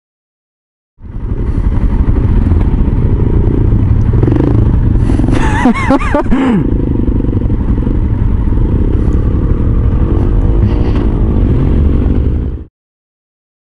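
A motorcycle engine idles and revs nearby in traffic.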